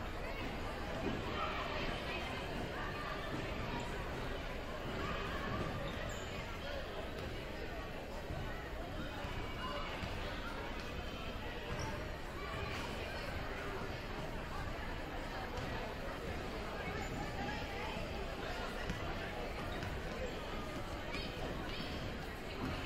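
A crowd of men, women and children chatters all around in a large echoing gym.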